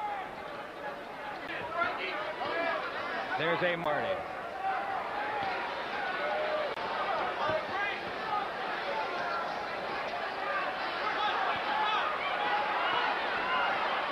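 A large crowd shouts and cheers throughout.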